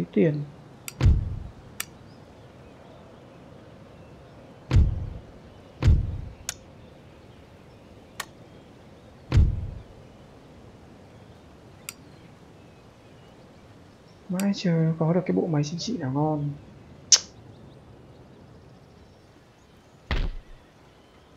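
Soft game interface thuds sound as menu panels open and close.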